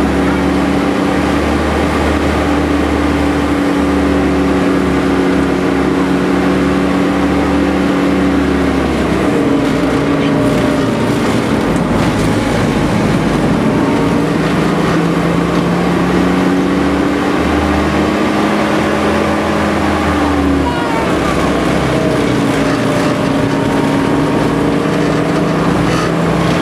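A heavy truck engine drones loudly throughout, rising and falling in pitch as the truck shifts gears.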